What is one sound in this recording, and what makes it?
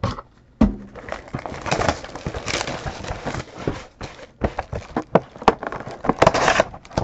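Hands rustle and slide a cardboard box.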